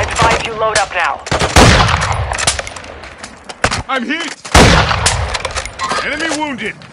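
A rifle fires loud sharp shots.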